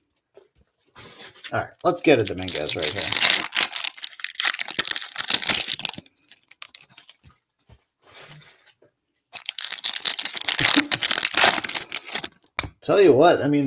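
A plastic wrapper crinkles and tears as hands rip it open.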